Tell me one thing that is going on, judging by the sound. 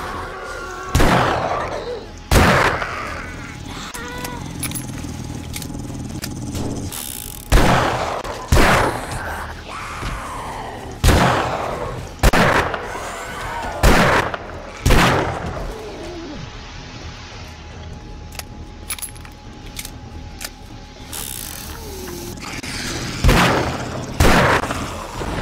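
Gunshots ring out, loud and sharp, with short echoes.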